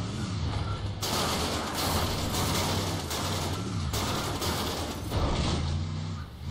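Bushes and branches crash and scrape against a vehicle.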